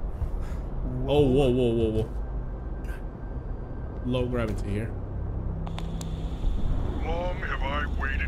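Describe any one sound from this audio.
A man speaks into a close microphone in short, surprised bursts.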